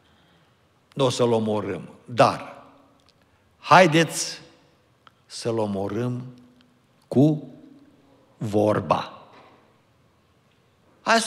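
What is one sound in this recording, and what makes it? An elderly man speaks slowly and deliberately into a microphone, in short phrases with pauses.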